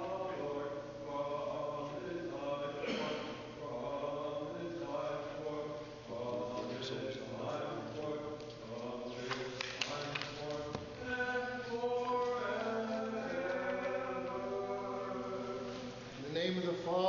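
A man chants in a steady sung voice, echoing through a large hall.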